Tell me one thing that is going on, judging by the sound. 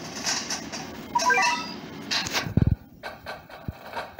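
A short electronic chime sounds as a game menu opens.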